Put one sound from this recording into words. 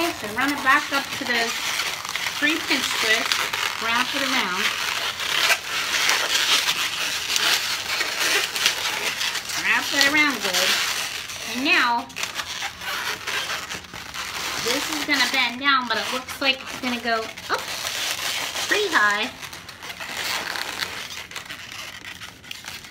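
Balloons squeak and rub as they are twisted.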